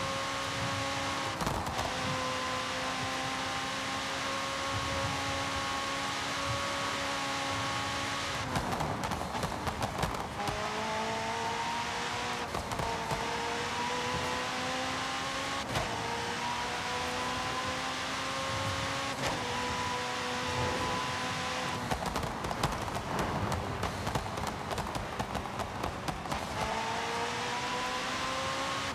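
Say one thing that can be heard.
Tyres hiss and rumble on the road.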